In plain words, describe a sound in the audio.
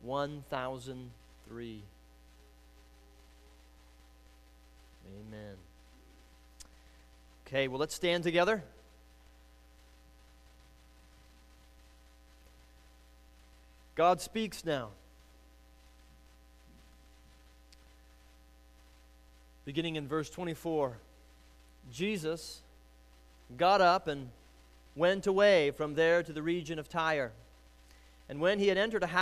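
A young man speaks through a microphone in short bursts with long pauses.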